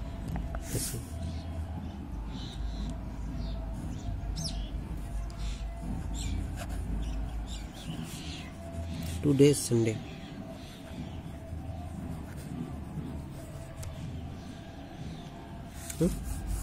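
A pen scratches softly on paper.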